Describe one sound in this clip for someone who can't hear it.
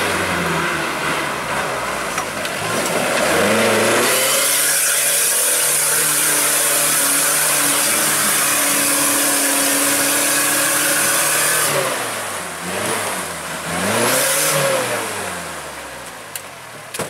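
An off-road 4x4 engine revs hard.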